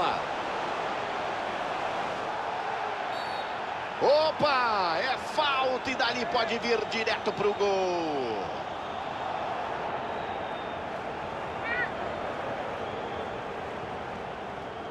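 A large stadium crowd roars steadily.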